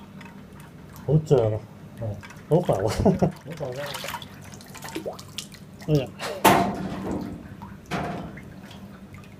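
Water splashes and sloshes as hands swish an object through it.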